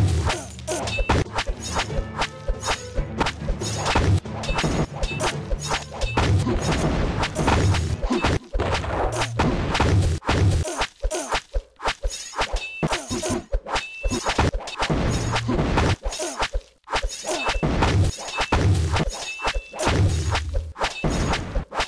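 Game towers fire with sharp thuds and pops.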